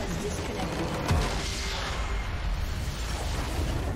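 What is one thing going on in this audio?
A structure shatters with a loud crash.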